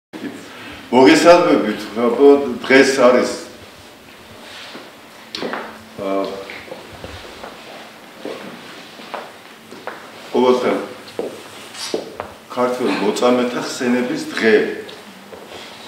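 A middle-aged man speaks calmly and slowly in a room with some echo.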